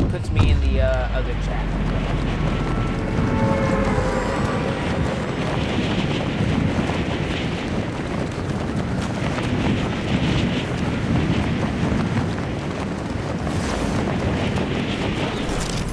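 Wind rushes steadily.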